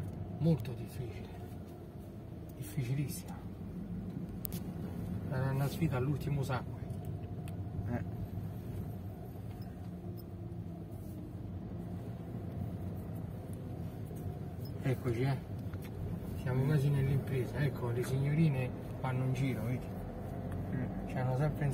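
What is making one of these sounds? A vehicle engine hums steadily from inside the cabin.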